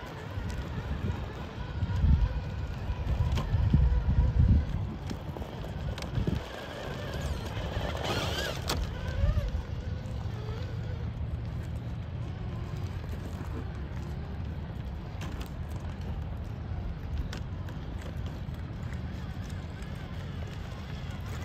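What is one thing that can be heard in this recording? A small electric motor whirs.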